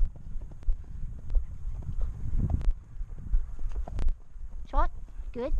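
A horse's hooves thud steadily on soft dirt.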